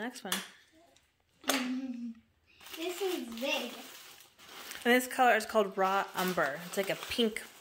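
Paper rustles and crinkles as a gift bag is opened.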